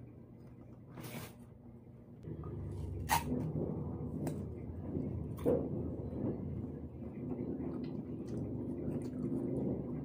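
Fruit peel tears and rustles in a woman's hands.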